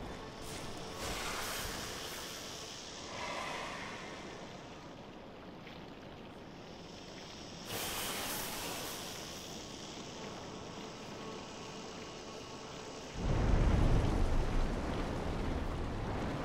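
Leaves and grass rustle as someone pushes through bushes.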